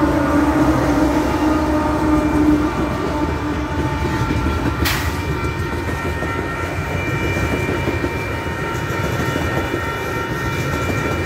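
A freight train rumbles past close by.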